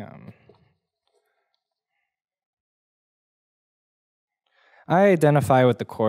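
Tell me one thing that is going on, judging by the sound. A young man reads aloud into a microphone, pausing between phrases.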